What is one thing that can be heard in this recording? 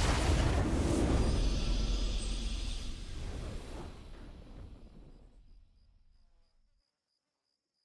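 A triumphant game victory fanfare plays loudly and fades away.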